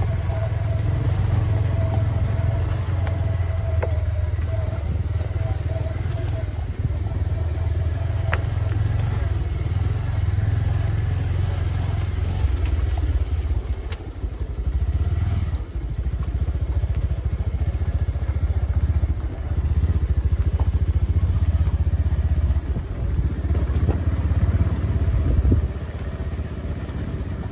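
Wind blows steadily outdoors, rumbling against the microphone.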